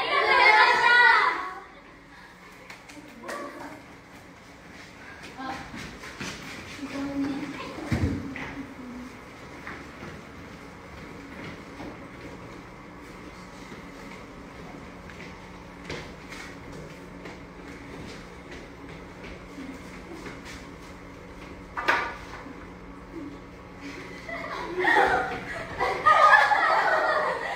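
A group of young women cheer and shout excitedly nearby.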